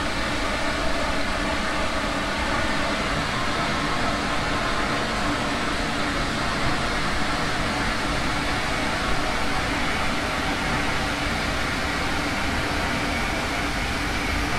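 An electric train rumbles steadily along the rails.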